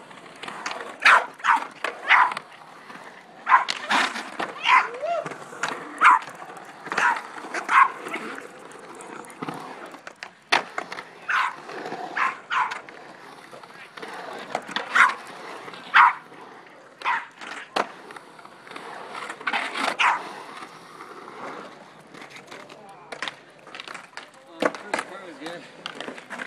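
A dog barks loudly and repeatedly.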